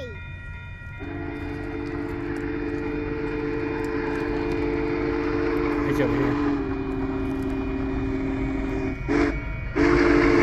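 A steam locomotive's whistle blows a long, steady chord in the distance.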